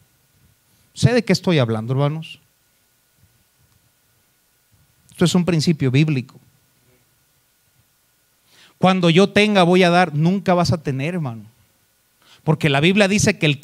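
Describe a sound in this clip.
A man speaks with emphasis into a microphone, in bursts with pauses, heard through loudspeakers.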